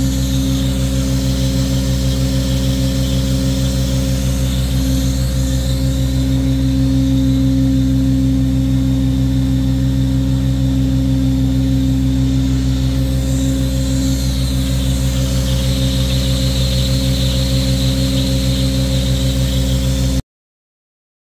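A wet vacuum hums steadily and loudly.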